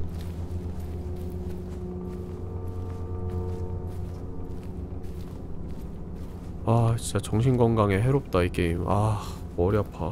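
Light footsteps patter across soft ground.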